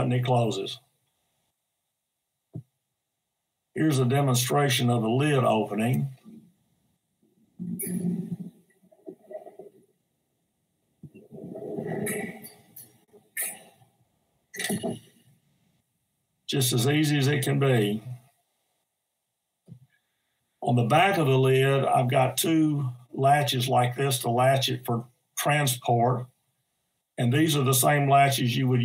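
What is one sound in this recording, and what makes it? An elderly man talks calmly through an online call, with pauses.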